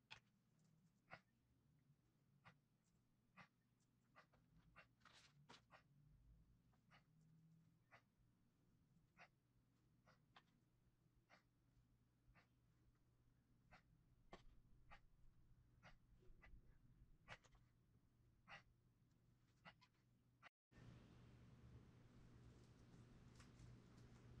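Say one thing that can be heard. Fingers press and pat soft clay with light, quick taps.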